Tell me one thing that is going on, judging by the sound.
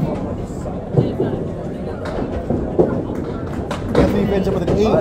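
Bowling pins crash and clatter.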